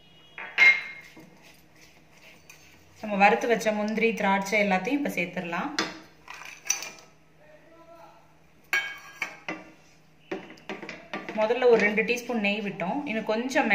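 A wooden spoon stirs thick liquid and scrapes a metal pan.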